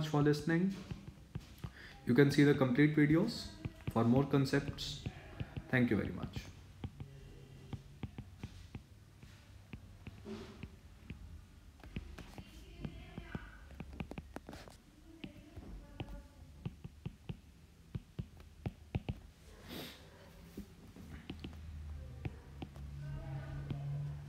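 A stylus taps and scratches on a tablet's glass.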